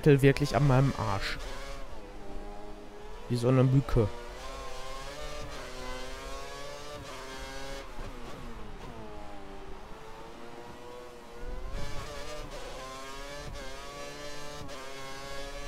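A racing car engine whines loudly, its pitch rising and falling as the gears shift.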